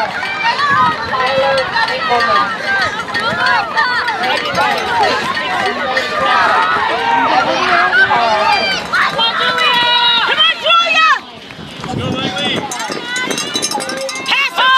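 A crowd of spectators cheers and shouts encouragement nearby outdoors.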